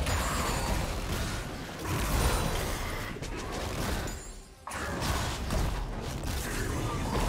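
Spell effects in a video game crackle and whoosh during a fight.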